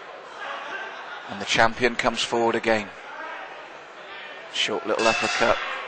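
Boxing gloves thud as punches land.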